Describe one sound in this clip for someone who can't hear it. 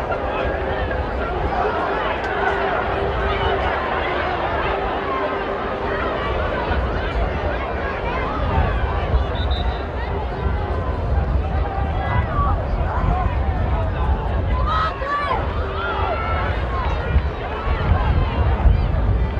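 A large crowd of spectators murmurs and chatters outdoors.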